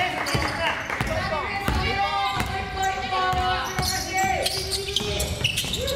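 A basketball bounces on a wooden floor with hollow thuds.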